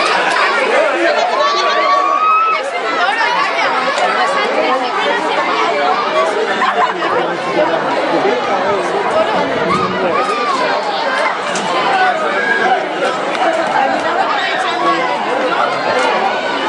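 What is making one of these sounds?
A crowd of men and women shouts and chatters excitedly outdoors.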